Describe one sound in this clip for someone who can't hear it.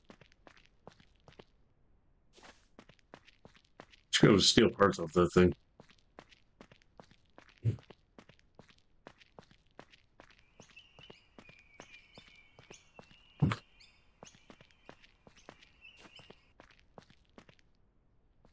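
Footsteps tread steadily over hard ground.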